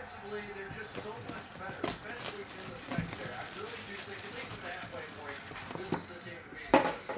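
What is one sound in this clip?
Plastic wrap crinkles and tears.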